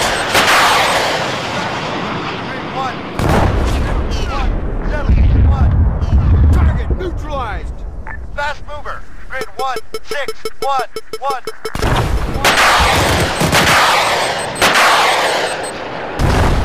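A missile launches with a loud roaring whoosh.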